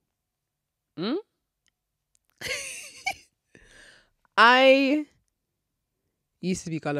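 A young woman speaks into a close microphone with animation, in short bursts with pauses.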